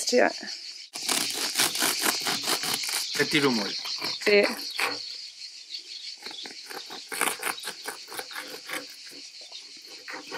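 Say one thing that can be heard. A knife saws through crusty bread with a crackling crunch.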